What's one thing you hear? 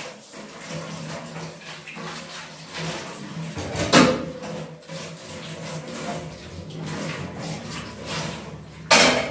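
Metal dishes clink and clatter as they are washed.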